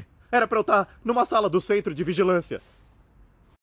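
A young man speaks fearfully and pleads.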